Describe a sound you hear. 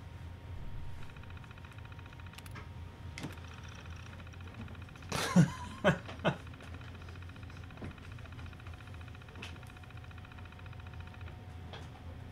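An old computer terminal chatters with rapid, even ticks as text prints out.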